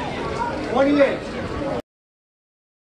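A man speaks loudly to an audience.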